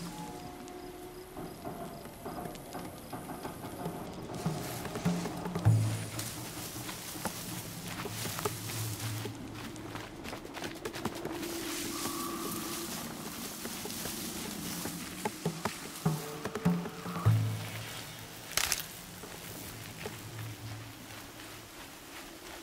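Tall grass rustles as someone moves through it.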